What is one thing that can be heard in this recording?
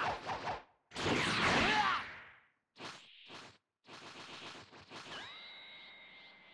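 Energy blasts whoosh and crackle in short bursts.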